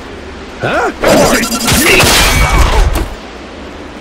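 A heavy blow thuds during a struggle.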